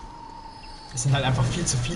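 A young man talks casually into a microphone, close by.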